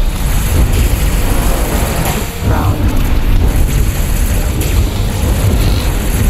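Explosions boom in a space battle.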